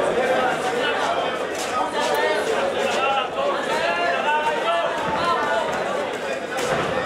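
A crowd shouts and cheers loudly throughout.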